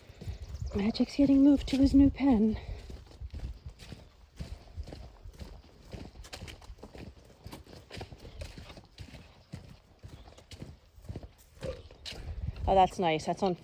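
Footsteps tread on a path outdoors.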